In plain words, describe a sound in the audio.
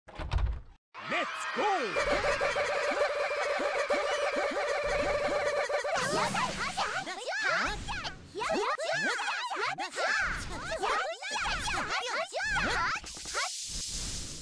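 Upbeat electronic game music plays.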